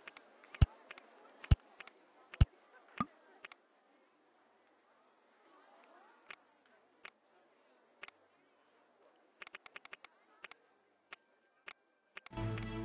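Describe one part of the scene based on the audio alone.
Short interface clicks sound as menu buttons are pressed.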